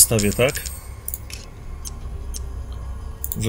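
Short soft clicks sound as menu items are selected.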